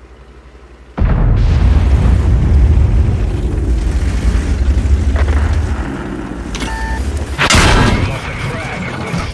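A tank engine rumbles loudly as the tank drives.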